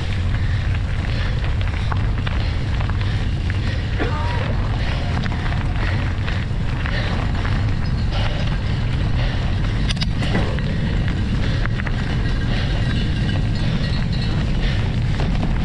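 Wind rushes and buffets over a moving bicycle.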